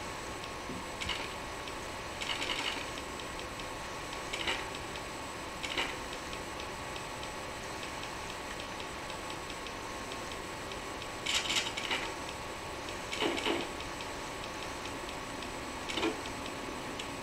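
Short electronic ticks and crackles sound as a game menu scrolls.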